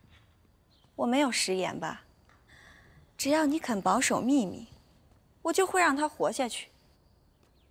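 Another young woman answers quietly, close by.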